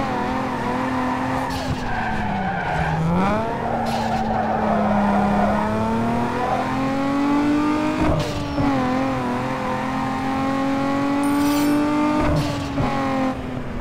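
A sports car engine revs hard, rising and dropping in pitch as the gears shift.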